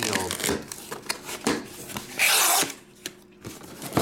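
A cardboard lid slides off a box with a dry scrape.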